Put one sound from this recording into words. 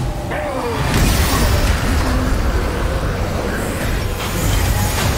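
Stone crashes and crumbles with a heavy rumble.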